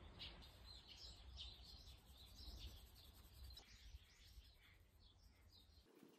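A cloth rubs softly against a small metal part.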